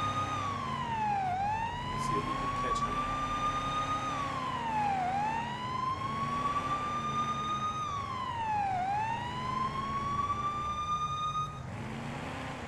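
A police siren wails, rising and falling in slow sweeps.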